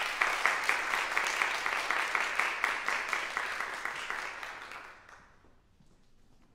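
An audience applauds in a large hall, then fades away.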